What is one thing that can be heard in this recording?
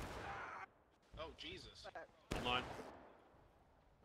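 Rifle shots crack nearby.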